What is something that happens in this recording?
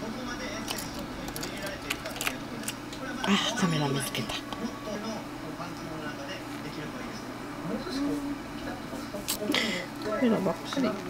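A budgerigar chirps and chatters softly close by.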